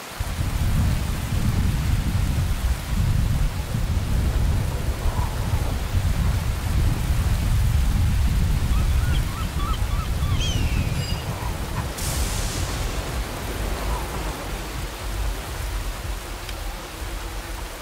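Waves wash steadily against a shore.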